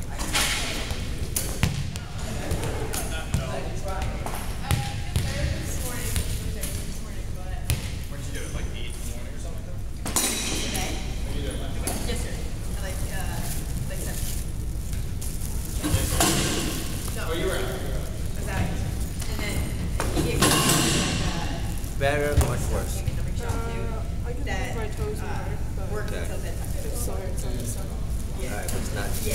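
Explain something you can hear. A young man and a young woman talk calmly nearby.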